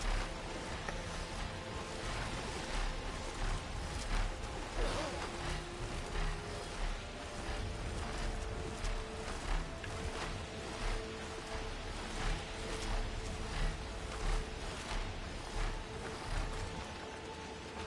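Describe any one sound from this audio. Large wings beat in steady, heavy whooshes.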